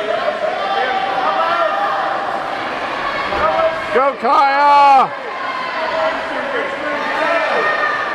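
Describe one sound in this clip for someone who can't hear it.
A crowd cheers and shouts loudly.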